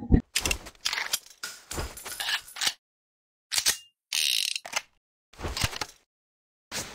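A revolver's cylinder clicks and rattles as it is reloaded.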